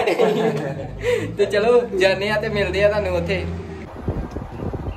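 A young man laughs and talks with animation close by.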